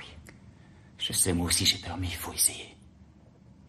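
A young man speaks quietly and earnestly close by.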